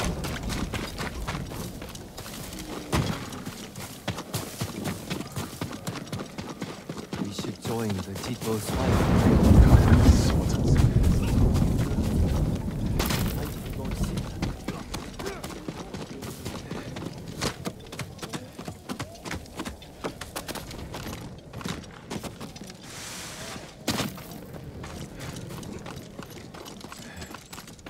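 Footsteps patter quickly on dirt and grass.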